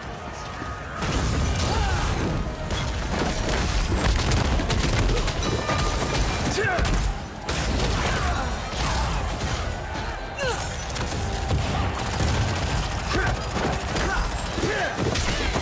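Magic spells crackle, boom and burst during a fight.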